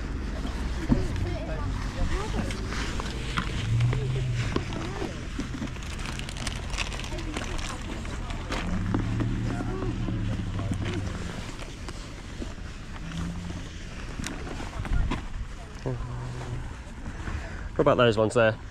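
Rubber boots rustle and knock as hands handle them.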